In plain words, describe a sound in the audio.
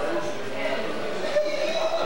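A boy speaks into a microphone through a loudspeaker.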